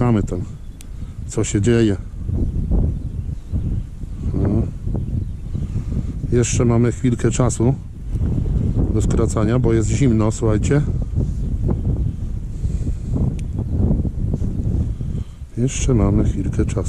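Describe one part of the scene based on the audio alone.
Gloved hands rustle and handle grass stems close by.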